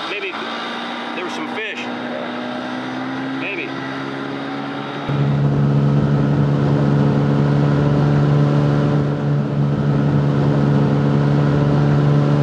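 An outboard motor drones steadily as a boat speeds across the water.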